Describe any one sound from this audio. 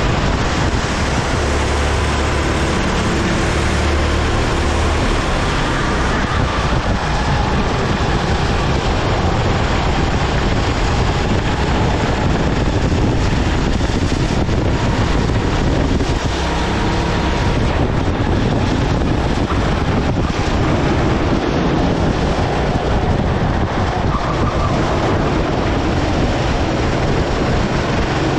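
A kart engine buzzes loudly close by, rising and falling as it speeds up and slows down.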